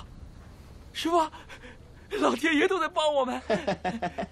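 A young man calls out excitedly.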